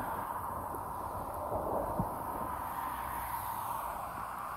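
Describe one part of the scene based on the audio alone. A car drives past close by on the road.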